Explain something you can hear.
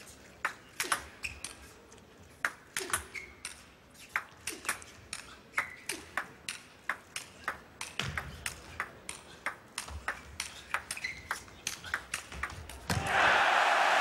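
A table tennis ball clicks back and forth off paddles and the table.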